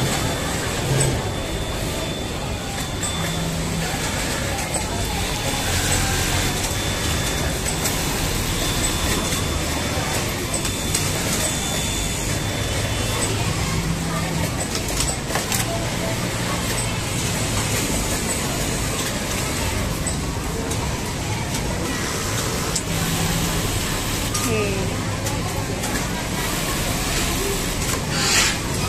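Many sewing machines hum steadily in a large busy hall.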